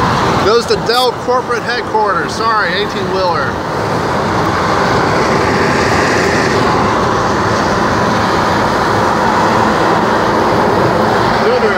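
A large truck rumbles past close alongside.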